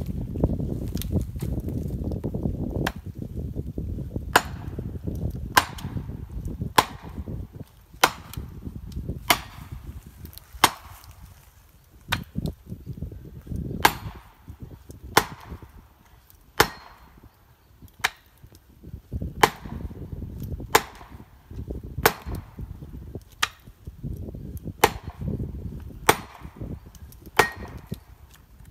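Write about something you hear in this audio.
A sledgehammer strikes a metal wedge with sharp, ringing clangs at a steady pace.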